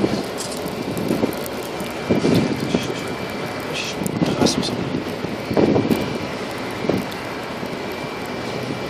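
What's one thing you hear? Hail patters steadily on the ground.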